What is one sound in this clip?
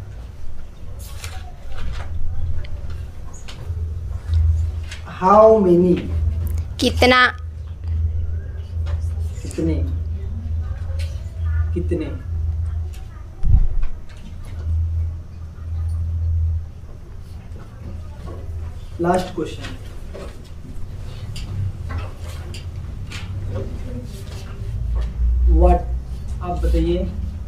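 A teenage boy speaks calmly and close by.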